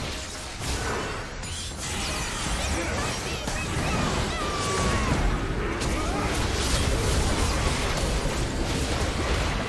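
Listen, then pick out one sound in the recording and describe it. Magic blasts and clashing combat effects from a video game crackle and boom.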